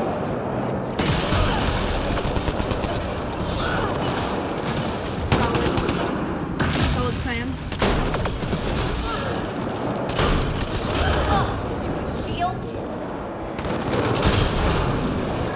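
Blasts and explosions boom.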